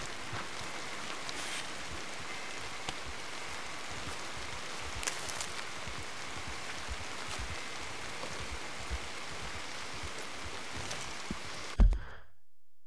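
Outdoors, a soft breeze stirs the forest.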